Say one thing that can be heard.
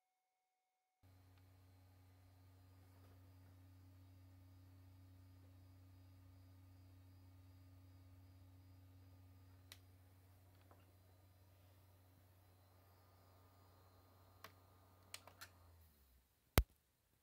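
A console's fan and drive hum steadily, then stop.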